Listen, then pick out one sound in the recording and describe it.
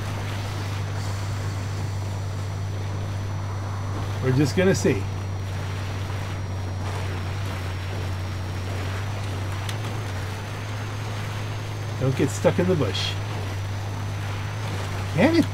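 A truck engine drones steadily as it climbs a rough slope.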